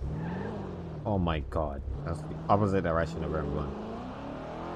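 Tyres screech as a car skids around a corner.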